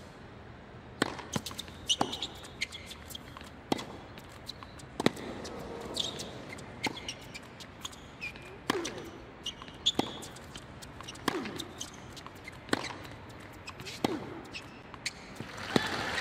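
Tennis rackets strike a ball back and forth in a rally.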